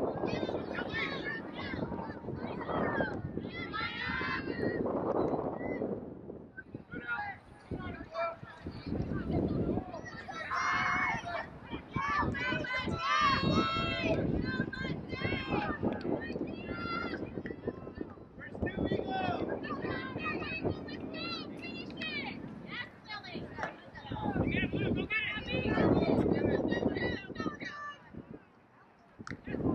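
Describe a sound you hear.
Spectators cheer and shout from the sidelines.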